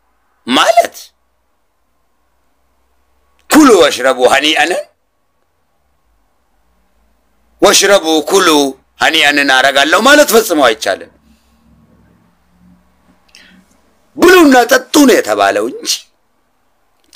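A man speaks with animation in short bursts close to a microphone.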